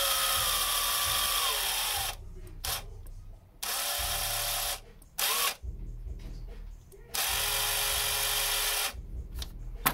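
A cordless impact wrench whirs loudly in short bursts.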